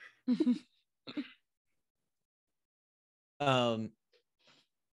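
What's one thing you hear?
A woman laughs over an online call.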